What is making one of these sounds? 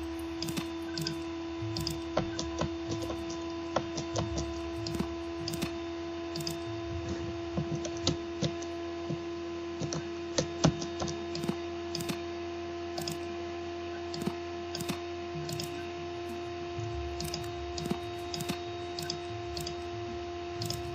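Short clicks from a computer game sound again and again at uneven intervals.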